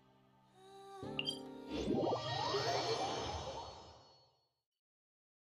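A bright shimmering chime rises and fades.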